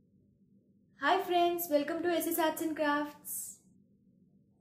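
A young woman speaks brightly into a microphone.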